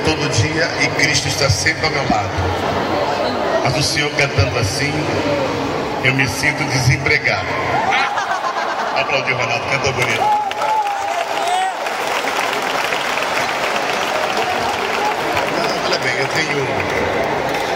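A band plays loud music through speakers.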